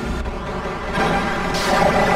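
Laser guns zap and crackle in a battle.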